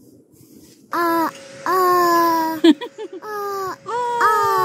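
A young child sings loudly close by.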